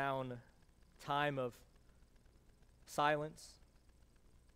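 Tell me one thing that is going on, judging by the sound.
A man speaks calmly into a microphone in a quiet, echoing room.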